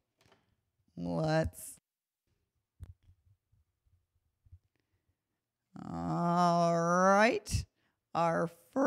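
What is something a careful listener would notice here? A woman sings into a microphone, holding long notes.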